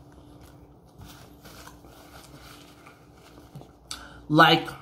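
Paper crinkles as a young man unwraps food.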